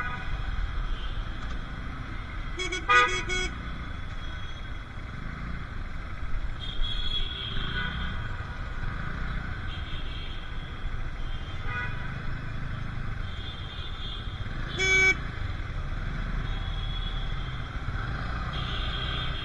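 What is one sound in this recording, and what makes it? Motorcycle engines idle and rumble in slow traffic nearby.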